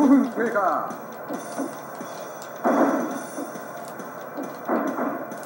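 Video game sounds play in short bursts from a small television speaker.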